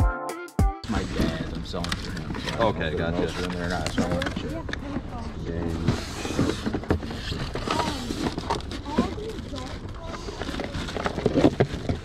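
Men talk with animation close by.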